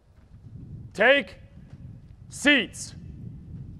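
A man shouts short, loud commands outdoors.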